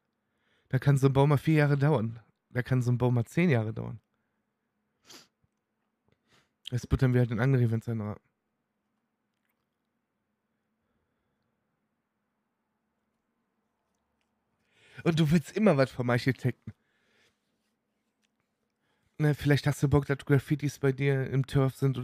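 A young man talks casually into a microphone, in bursts with pauses.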